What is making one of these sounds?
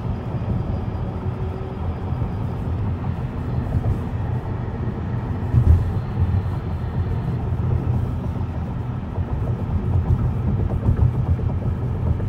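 Road noise and wind rumble steadily from inside a moving car.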